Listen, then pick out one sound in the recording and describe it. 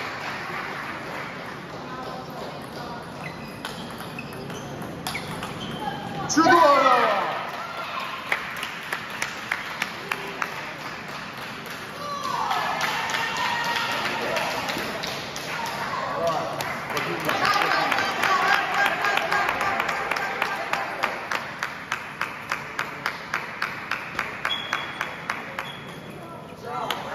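A table tennis ball clicks rapidly back and forth off paddles and a table in a large echoing hall.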